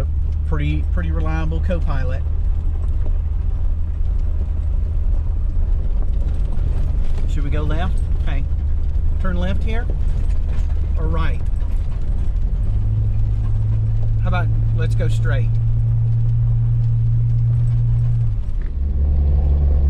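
A vehicle engine drones steadily.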